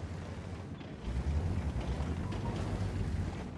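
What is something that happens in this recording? A shell explodes nearby with a loud boom.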